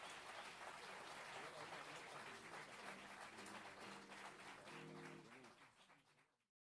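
A big band with horns and piano plays loudly in a hall, then fades out.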